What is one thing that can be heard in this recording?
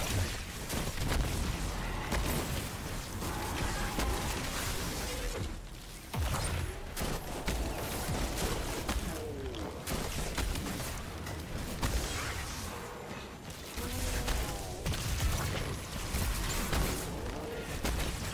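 Guns fire in rapid bursts with loud energy blasts.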